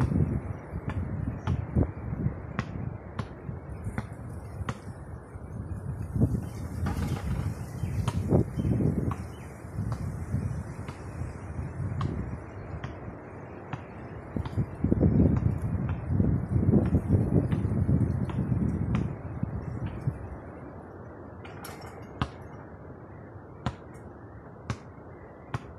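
A basketball bounces repeatedly on hard pavement outdoors.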